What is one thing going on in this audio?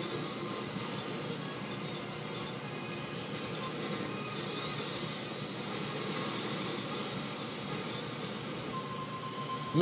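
Racing engines whine steadily through a game's speakers.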